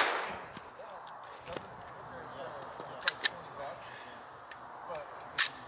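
Pistol shots crack sharply outdoors, one after another.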